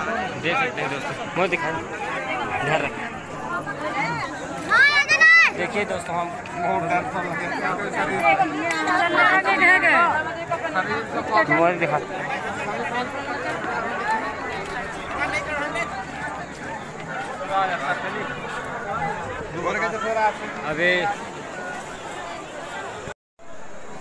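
A large crowd chatters and calls out all around outdoors.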